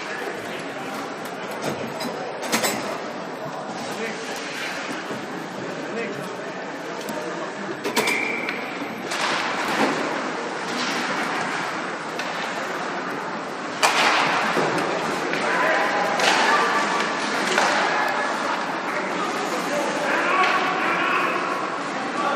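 A crowd of spectators chatters and cheers in a large echoing arena.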